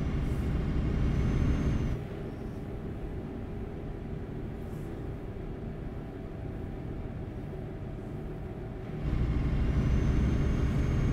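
A truck engine rumbles steadily, growing louder at times.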